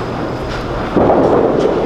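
Bowling pins crash and clatter as a ball strikes them.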